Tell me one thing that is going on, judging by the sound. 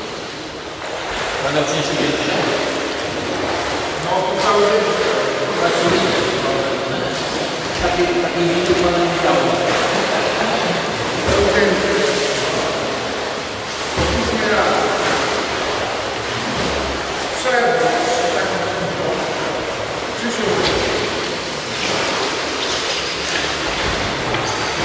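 Water splashes steadily in a large echoing hall.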